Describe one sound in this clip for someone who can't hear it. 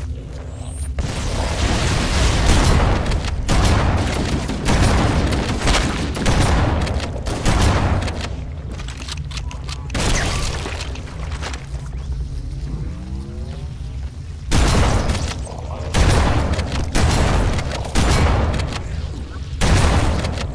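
Rapid gunfire rattles in repeated bursts.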